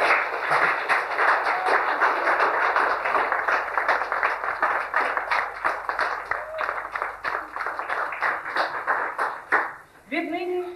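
A crowd claps and applauds loudly.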